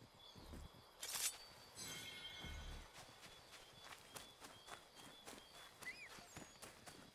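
Footsteps rustle through grass at a steady pace.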